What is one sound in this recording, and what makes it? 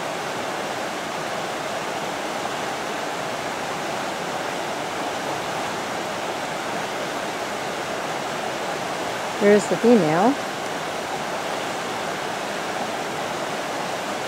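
A shallow stream rushes and gurgles over rocks.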